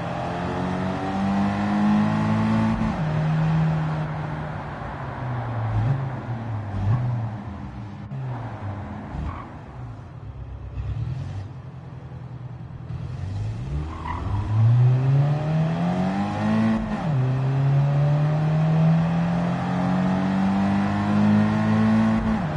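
A car engine revs high, drops as gears shift, and climbs again.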